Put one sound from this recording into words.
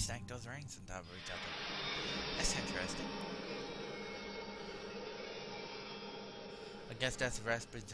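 A shimmering, sparkling whoosh swells and slowly fades.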